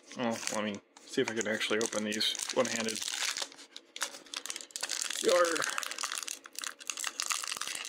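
A foil wrapper crinkles and rustles in a hand.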